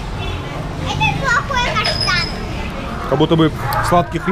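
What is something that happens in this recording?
A young girl speaks in a high voice close by.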